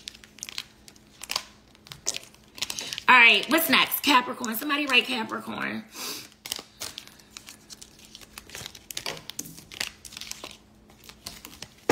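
Plastic packaging crinkles and rustles in a young woman's hands.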